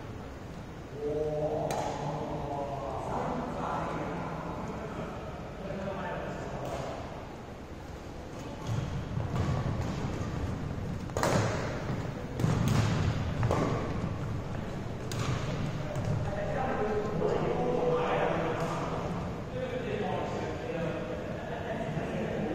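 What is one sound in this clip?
Young men talk with animation, echoing in a large hall.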